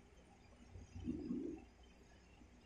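A sleeping dog lets out a low grunt.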